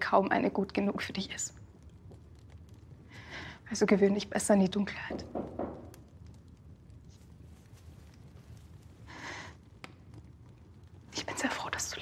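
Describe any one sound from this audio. A young woman speaks softly and nearby.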